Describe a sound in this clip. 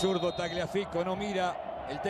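A stadium crowd roars and chants.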